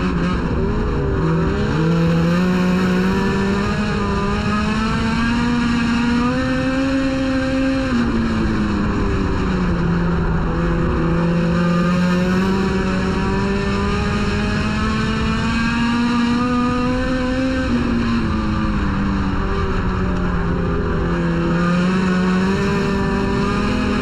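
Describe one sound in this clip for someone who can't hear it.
A race car engine roars loudly up close, revving up and down again and again.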